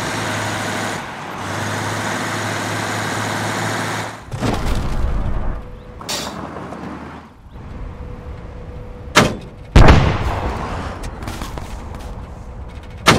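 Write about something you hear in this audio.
An armoured vehicle's engine rumbles steadily.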